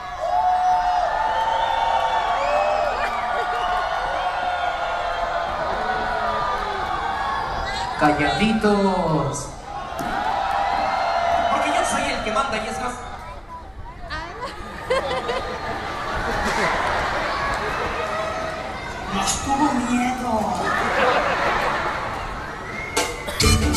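Men's voices call out loudly through a loudspeaker in a large echoing hall.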